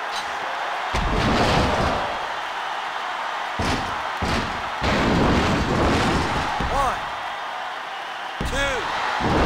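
A heavy body slams onto a wrestling mat.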